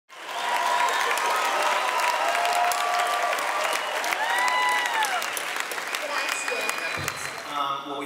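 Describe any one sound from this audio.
A large crowd cheers and whistles in an echoing hall.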